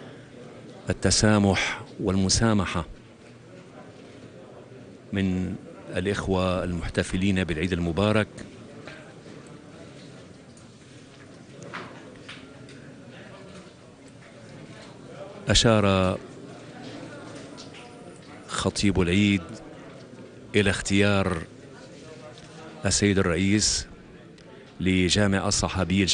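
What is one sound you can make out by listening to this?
Men exchange greetings close by, talking warmly.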